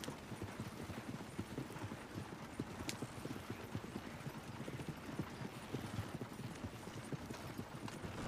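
Horse hooves clop steadily on a dirt road.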